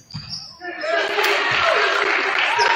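A crowd in an echoing gym cheers loudly.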